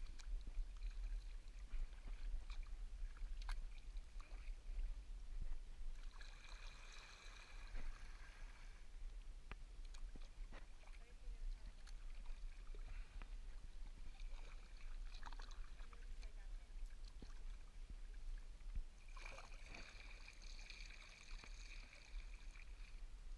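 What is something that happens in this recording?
Water laps and trickles against a kayak's hull.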